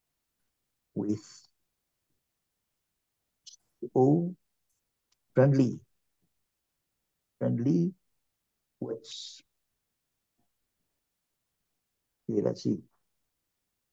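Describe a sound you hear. A man speaks in short, halting phrases through an online call.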